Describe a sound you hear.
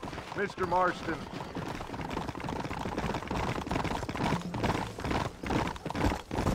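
Horses' hooves clop quickly on a hard street.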